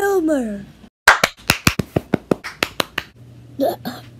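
Hands clap quickly several times.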